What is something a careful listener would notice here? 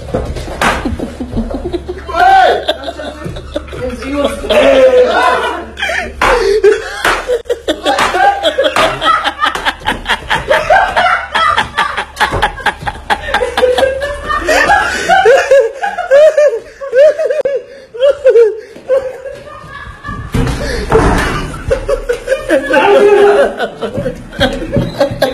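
Young men shout and laugh loudly close by.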